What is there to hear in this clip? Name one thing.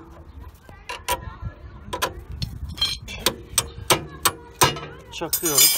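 A hammer bangs sharply on metal several times.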